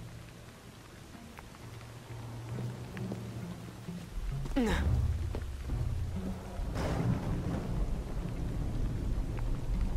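Footsteps scuff and thud on stone.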